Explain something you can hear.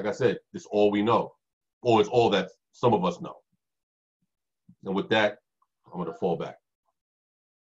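A man speaks calmly over an online call, in short phrases.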